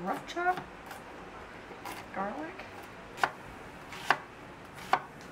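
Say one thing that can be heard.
A knife chops against a cutting board with sharp knocks.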